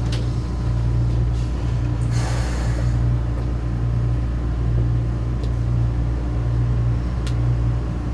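A tram's electric motor hums steadily as the tram pulls away.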